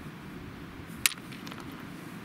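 A stone clicks sharply against other stones.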